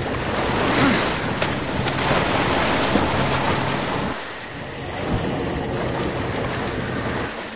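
Water splashes and churns as a creature thrashes through it.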